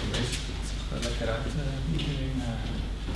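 A man speaks calmly from across an echoing hall.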